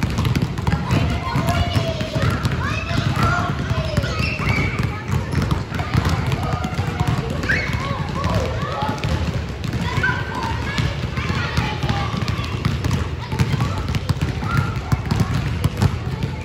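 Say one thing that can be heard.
Many basketballs bounce on a wooden floor in a large echoing gym.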